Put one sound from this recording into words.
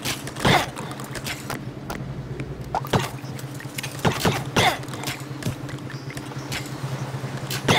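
Small swords clash in a skirmish.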